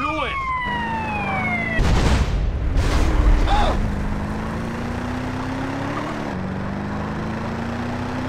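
A car engine revs as a car speeds along.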